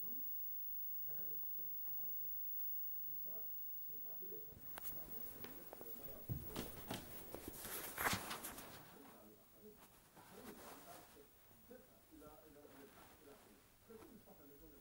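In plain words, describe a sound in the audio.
Footsteps run quickly over the ground.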